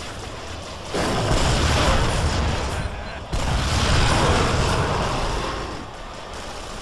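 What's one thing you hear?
Gunfire booms in heavy bursts.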